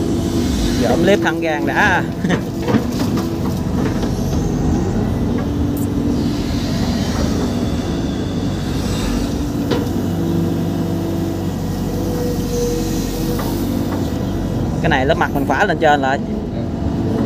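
An excavator's hydraulics whine and squeal as the arm moves.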